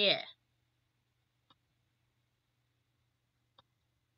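A soft interface click sounds.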